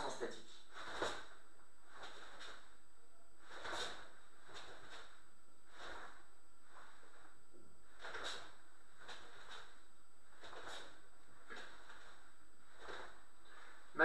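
A punch thumps against a pad.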